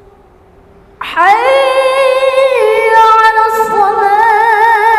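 A young boy chants loudly through a microphone in a long, wavering melodic voice, in an echoing hall.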